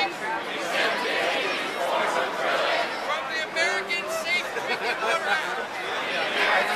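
A crowd of men and women chants in unison outdoors, repeating a speaker's words phrase by phrase.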